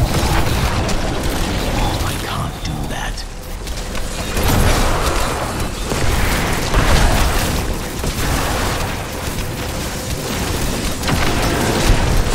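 Laser beams hum and crackle in fast bursts.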